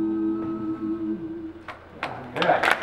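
A group of men sing together in close harmony in an echoing hall.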